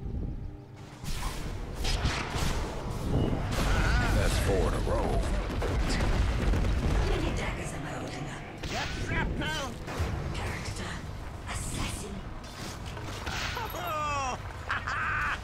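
Fantasy battle sounds crash and clash as spells and blows land.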